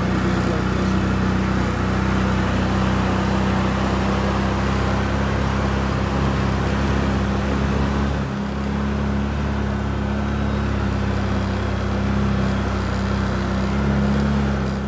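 An all-terrain vehicle engine drones steadily up close.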